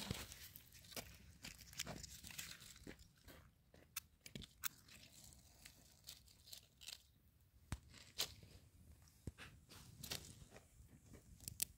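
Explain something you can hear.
Twigs rustle and clatter as they are stacked.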